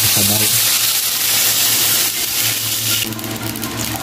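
Meat sizzles loudly in hot oil.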